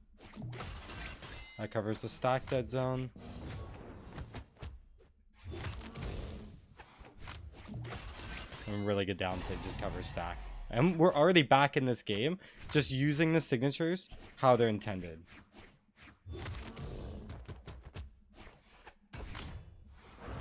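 Video game fighters strike each other with sharp hits and whooshes.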